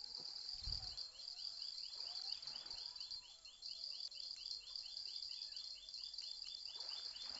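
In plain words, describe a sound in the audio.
A fishing reel clicks rapidly as it is wound in.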